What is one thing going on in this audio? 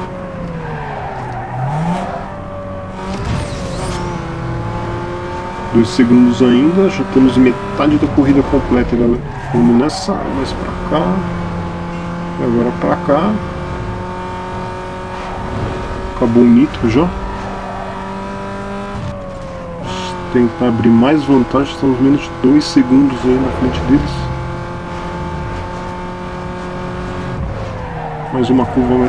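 A car engine roars at high revs, rising in pitch and dropping as gears change.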